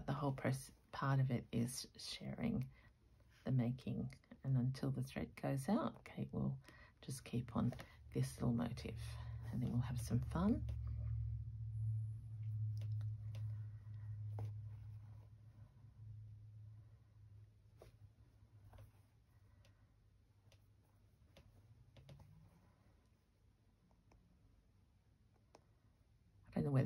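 Cloth rustles softly as it is handled and folded.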